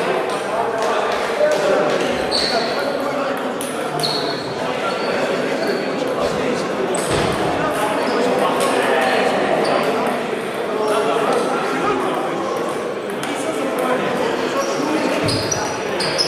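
Ping-pong balls click sharply on paddles and tables.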